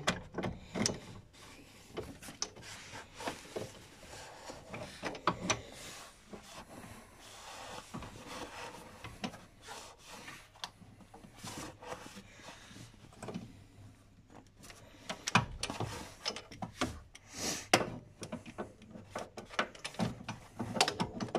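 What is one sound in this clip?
Metal tools click and scrape against engine parts.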